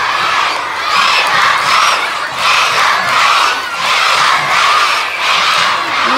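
A large crowd of children cheers loudly in an echoing hall.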